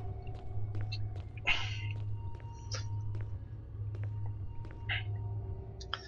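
Footsteps run along a hard floor.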